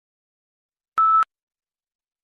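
A short electronic beep sounds once.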